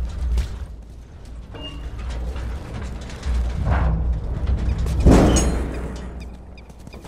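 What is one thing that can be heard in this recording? A metal dumpster scrapes across pavement as it is pushed.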